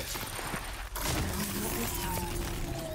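A spear strikes a metal machine with a loud crash.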